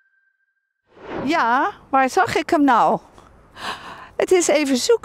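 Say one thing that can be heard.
A middle-aged woman speaks with animation outdoors, close to a microphone.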